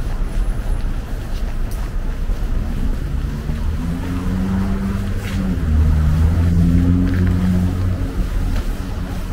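Low city traffic rumbles nearby.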